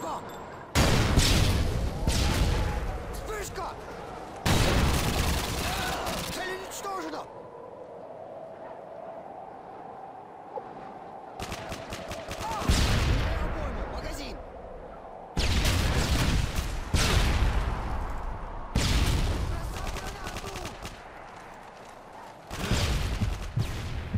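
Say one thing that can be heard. A rifle fires loud single shots, each echoing and slowly fading.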